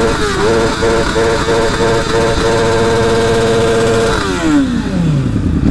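A motorcycle engine revs loudly nearby, then its pitch drops away.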